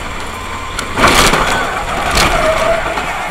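A car collides with another car with a loud bang.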